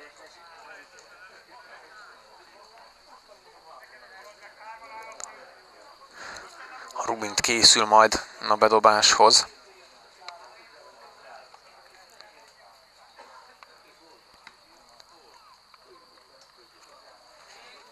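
Men shout to each other far off across an open field.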